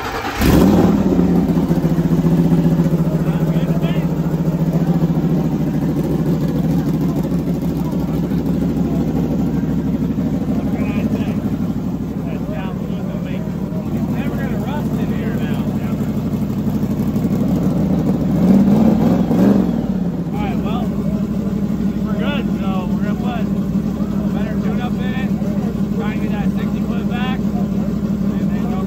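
A car engine idles with a steady rumble.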